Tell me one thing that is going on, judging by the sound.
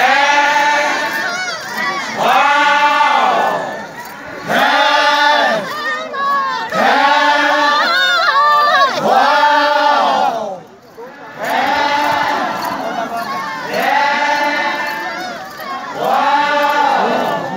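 A group of men chant together loudly in rising and falling phrases, close by, outdoors.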